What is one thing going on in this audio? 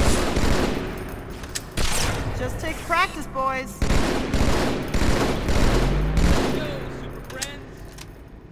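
Gunshots and explosions bang in quick bursts.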